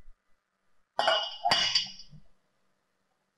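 Water sloshes in a glass bowl.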